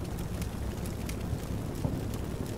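Gunfire cracks nearby.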